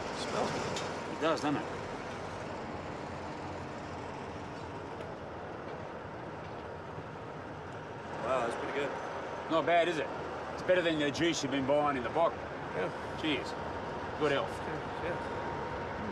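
Another man answers briefly.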